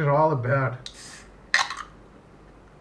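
A drink can hisses open with a sharp pop.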